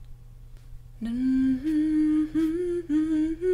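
A young woman sings, holding long notes.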